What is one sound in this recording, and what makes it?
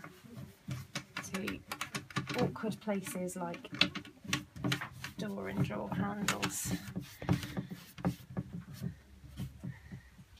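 A wax brush rubs and scuffs against wood.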